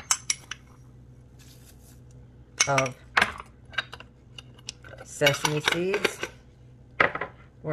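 A metal spoon scrapes and clinks against a ceramic bowl.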